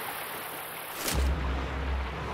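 A rifle is raised to the shoulder with a short clatter.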